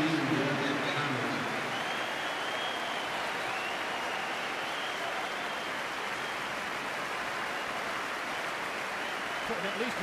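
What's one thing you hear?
A crowd claps its hands.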